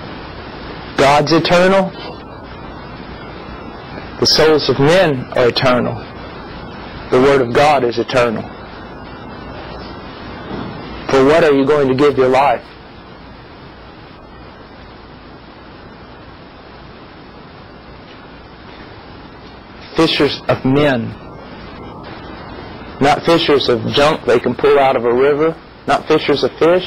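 A man speaks calmly and thoughtfully, close by, with pauses between phrases.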